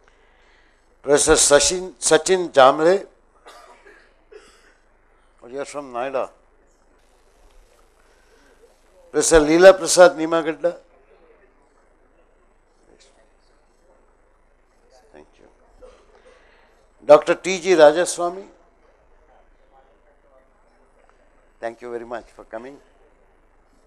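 A man speaks in short bursts through a microphone and loudspeaker, with silent pauses in between.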